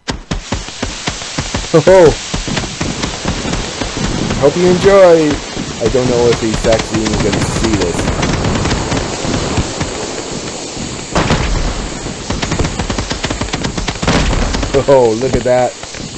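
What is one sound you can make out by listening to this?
Fireworks boom overhead.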